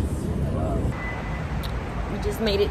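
A young woman talks close by.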